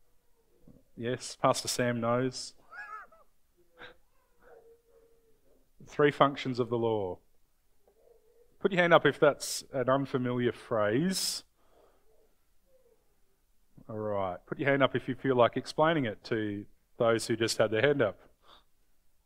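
A man speaks calmly and clearly, pausing between phrases, in a room with a slight echo.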